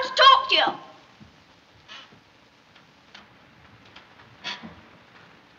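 A child calls out in a high, excited voice.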